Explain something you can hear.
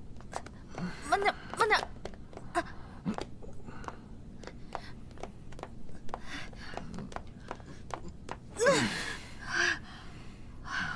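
A young woman grunts and groans with effort.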